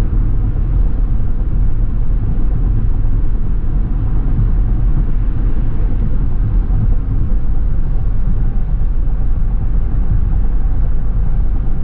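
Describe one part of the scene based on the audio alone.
A car's engine hums steadily as it drives along a highway.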